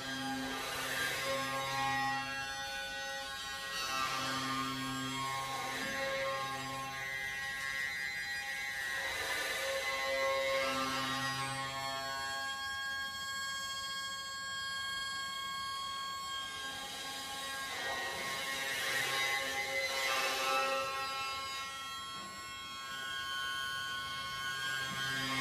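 A hurdy-gurdy drones and plays a buzzing melody.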